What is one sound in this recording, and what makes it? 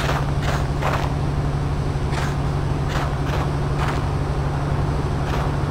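Footsteps thud slowly on a hollow wooden floor.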